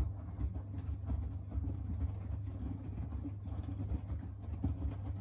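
A washing machine drum turns with a low, steady hum.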